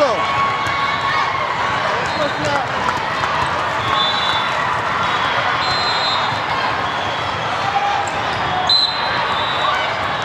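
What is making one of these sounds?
A volleyball thuds against players' arms.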